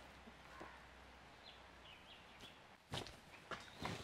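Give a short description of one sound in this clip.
An arrow thuds into a target.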